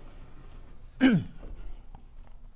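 A blackboard slides and thuds into place.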